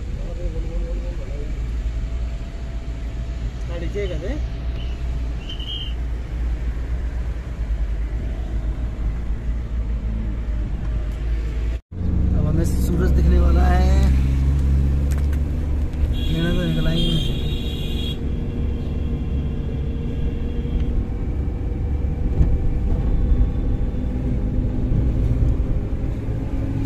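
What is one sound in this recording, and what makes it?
A car engine hums steadily from inside a moving vehicle.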